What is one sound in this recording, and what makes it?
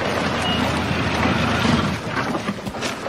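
A jeep engine rumbles nearby.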